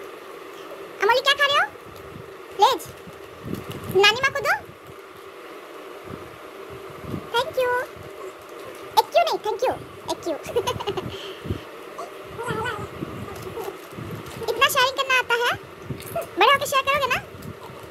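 A young child chatters in a high voice close by.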